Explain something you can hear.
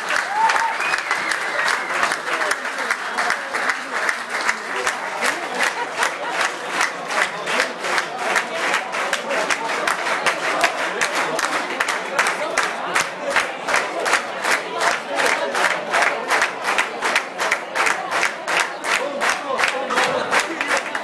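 A crowd claps in a fast, steady rhythm.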